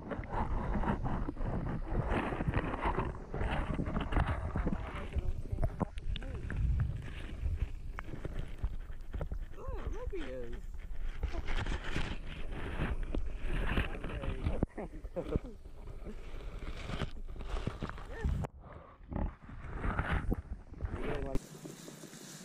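Water sloshes and gurgles close by, heard muffled under the surface.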